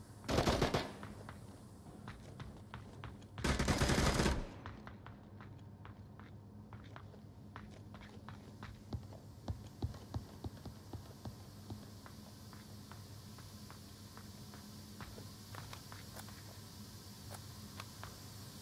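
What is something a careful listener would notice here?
Footsteps tread steadily on a hard concrete floor.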